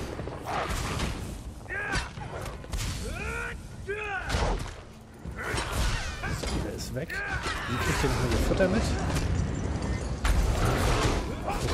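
Weapon blows thud against creatures.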